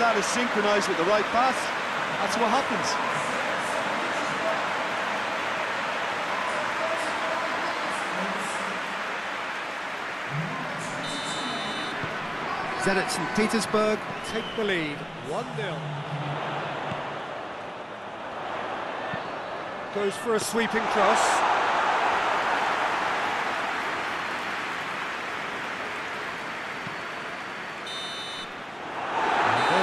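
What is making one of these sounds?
A large crowd roars steadily in a stadium.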